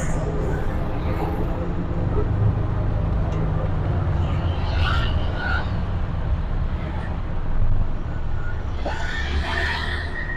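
A small motor rickshaw engine putters and rattles steadily close by.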